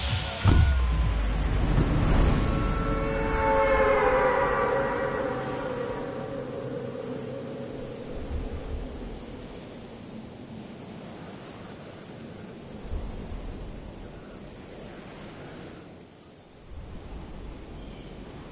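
Wind rushes steadily past during a glide, slowly growing quieter.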